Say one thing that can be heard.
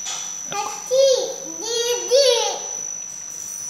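A small child vocalises in short, high babbling sounds close by.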